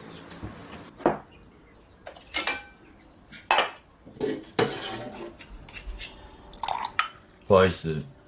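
Chopsticks clink against a porcelain bowl.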